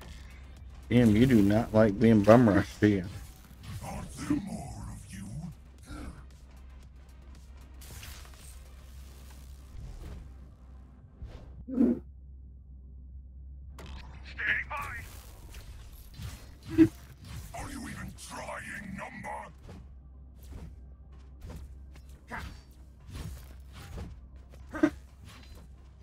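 Weapon blows and impacts thud sharply.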